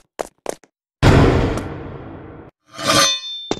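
Rubble crashes as a floor breaks apart.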